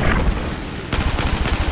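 A machine gun fires a rapid burst.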